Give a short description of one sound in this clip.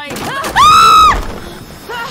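A young woman screams loudly into a close microphone.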